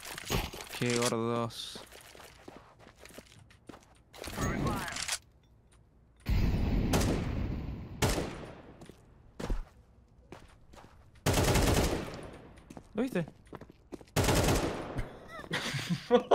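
Rifle shots fire in short bursts.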